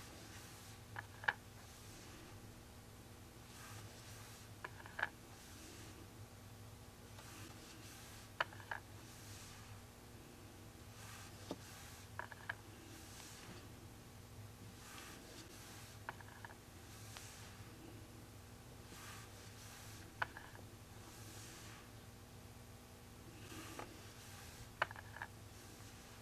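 A stylus taps lightly on a painted board.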